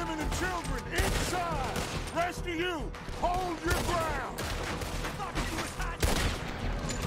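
Gunshots crack out now and then.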